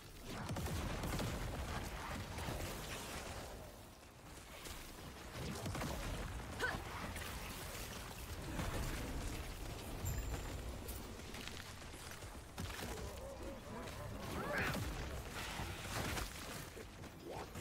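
Magic blasts and explosions crackle and boom in a game battle.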